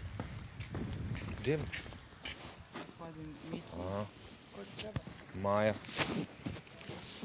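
A man talks at a distance.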